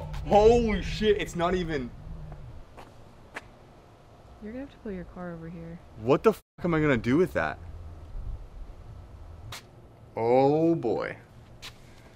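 A young man talks with animation, close by, outdoors.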